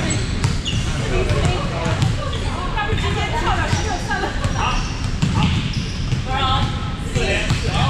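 A volleyball thuds as it is struck and bounces.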